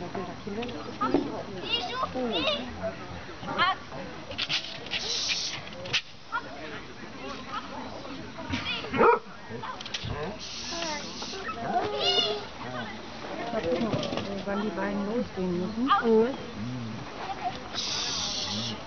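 Many people talk at a distance outdoors.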